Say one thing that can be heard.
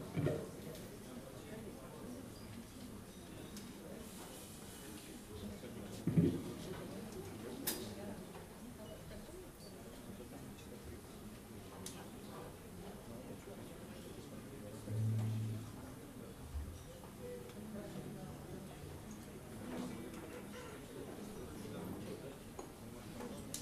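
An upright bass plays a walking line.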